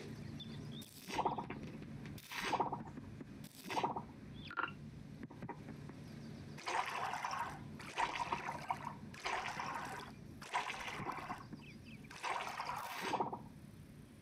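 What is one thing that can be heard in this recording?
Crops are plucked from the ground with short soft pops.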